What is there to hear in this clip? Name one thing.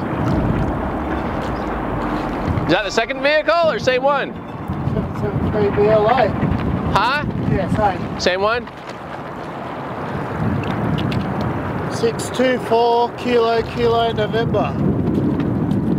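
Water splashes and ripples around a wading diver.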